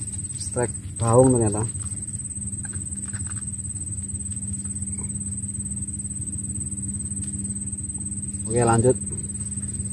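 A young man speaks briefly, close by.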